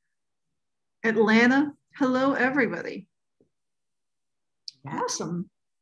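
A young woman speaks calmly over an online call, in short phrases with pauses.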